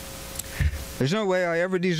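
A man speaks into a microphone, heard through a loudspeaker outdoors.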